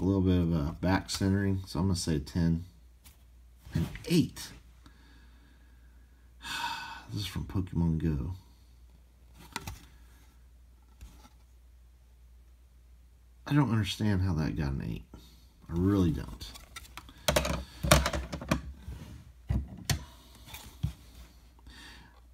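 A hard plastic case clicks and taps as hands turn it over.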